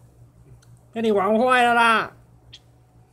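A cat gives a loud, drawn-out meow.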